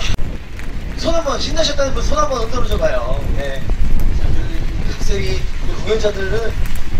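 A young man sings into a microphone through loudspeakers outdoors.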